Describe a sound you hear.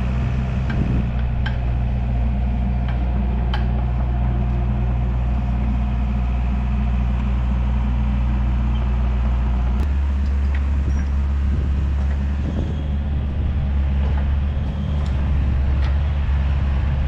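A heavy excavator engine rumbles steadily close by.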